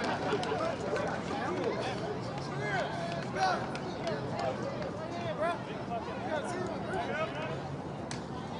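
Several men shout and call out close by, outdoors.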